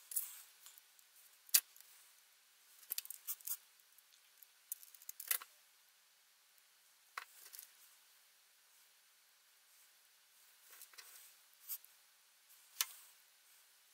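Small plastic parts click and tap as hands handle them.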